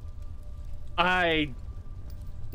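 A young man yelps loudly into a microphone, his voice dropping in pitch.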